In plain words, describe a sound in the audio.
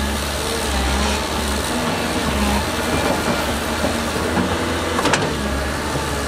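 Rocks and dirt clatter from an excavator bucket.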